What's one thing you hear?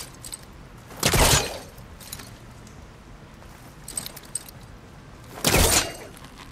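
Heavy thuds and scrapes sound as a climber lands on rock.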